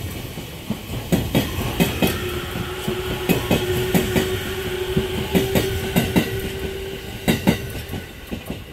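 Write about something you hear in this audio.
A train's motors whine steadily as it passes.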